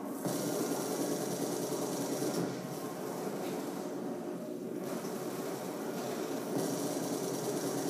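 Explosions boom from a television speaker.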